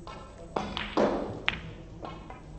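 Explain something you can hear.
Snooker balls knock together with hard clicks.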